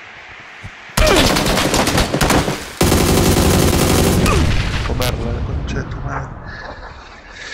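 Victory music plays loudly.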